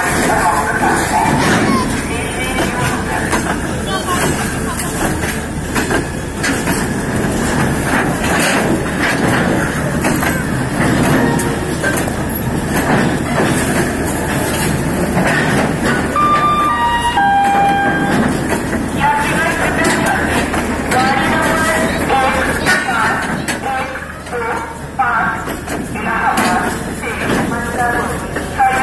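A freight train rumbles and clatters past on the rails.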